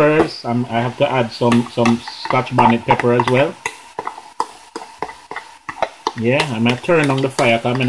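Liquid pours from a container into a hot pan.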